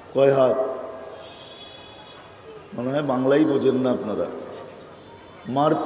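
An elderly man preaches forcefully through a microphone and loudspeakers, his voice echoing.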